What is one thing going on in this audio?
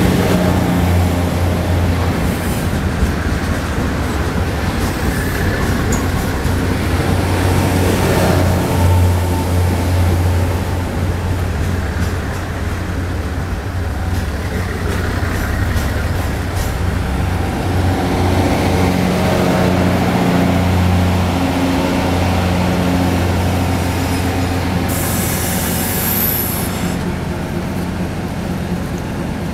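A passenger train rumbles past close by.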